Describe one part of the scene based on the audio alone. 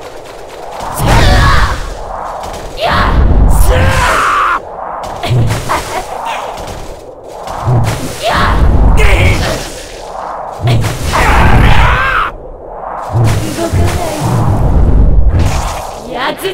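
Heavy blows thud in repeated bursts.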